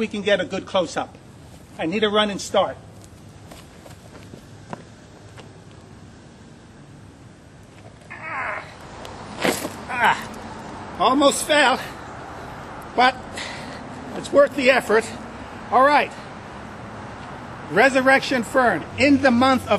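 A man speaks outdoors close by, calmly and with some animation.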